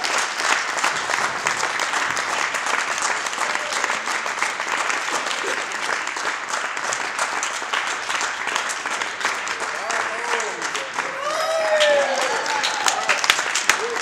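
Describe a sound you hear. Hands clap in applause that fills a room.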